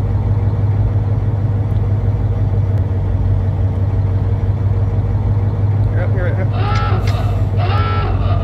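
A deep machine engine hums steadily.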